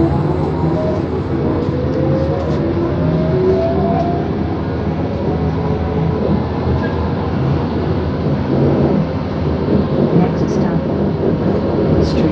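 A bus engine hums and rumbles steadily from inside while driving.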